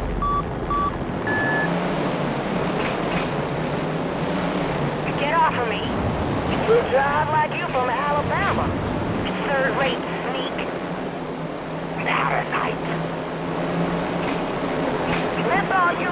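Small race car engines buzz and whine steadily.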